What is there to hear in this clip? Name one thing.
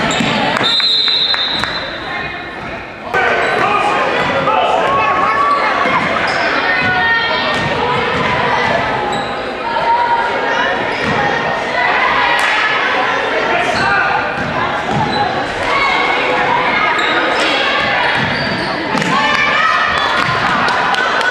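A crowd of young spectators cheers and shouts in an echoing gym.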